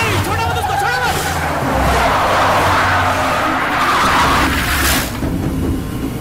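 SUVs race at speed over dirt, with their engines roaring.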